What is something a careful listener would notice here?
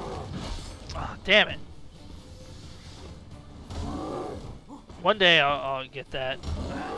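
A huge creature lets out deep, rumbling growls.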